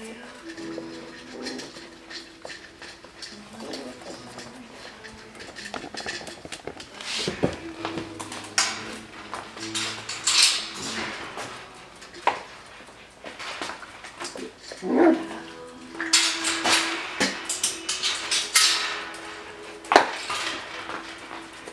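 Puppies yip and squeal as they play.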